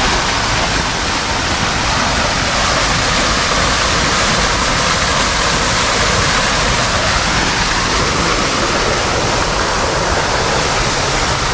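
Water splashes steadily down a fountain nearby.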